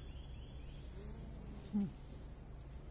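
A cow lows briefly nearby.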